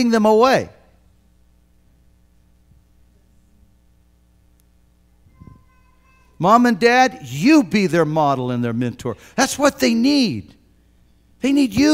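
An elderly man preaches through a microphone with animation, in loud bursts between pauses.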